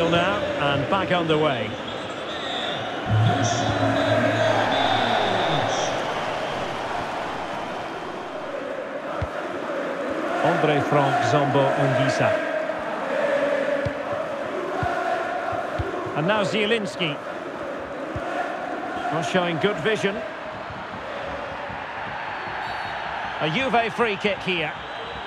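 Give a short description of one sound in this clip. A large stadium crowd murmurs and cheers steadily.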